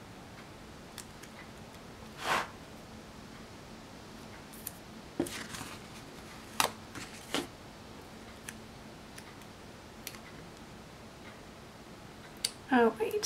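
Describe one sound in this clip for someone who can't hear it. Fingers rub and press stickers onto paper with soft rustles and taps.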